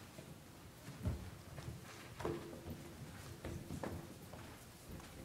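Feet shuffle and step on a wooden stage.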